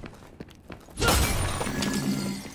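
A creature's flesh bursts with a wet splatter.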